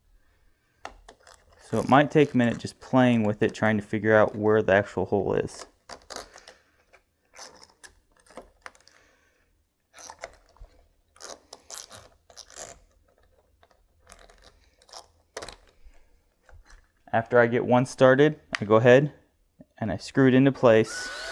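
A door knob rattles and clicks as a hand turns it.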